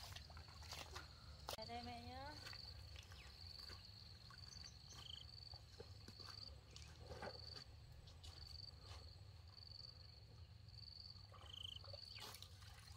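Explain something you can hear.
Shallow water trickles softly over stones.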